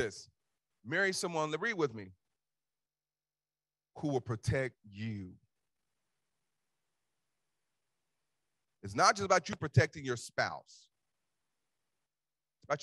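A man preaches through a microphone in bursts, with long pauses between phrases.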